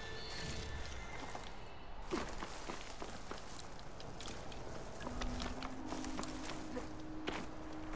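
Footsteps scrape and tap on rock.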